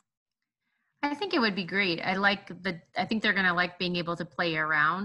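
A woman speaks steadily over an online call.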